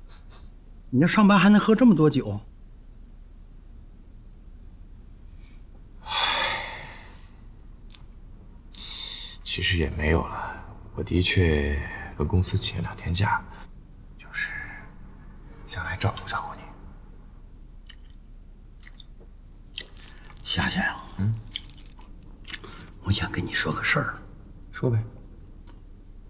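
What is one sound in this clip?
A middle-aged man speaks close by with a scolding tone.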